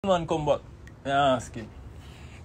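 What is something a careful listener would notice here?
A man speaks loudly and with animation close to a phone microphone.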